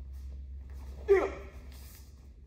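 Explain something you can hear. A young woman gives a short sharp shout.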